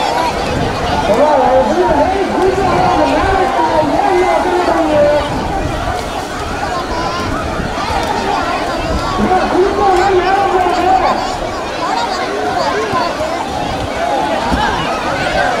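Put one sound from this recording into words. A crowd of men and boys shout and chant together outdoors.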